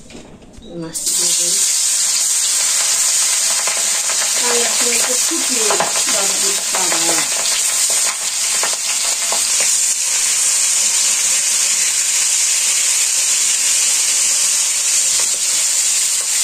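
Oil sizzles loudly as food fries in a pan.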